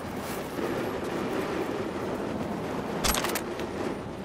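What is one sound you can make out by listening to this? Flames crackle and hiss close by.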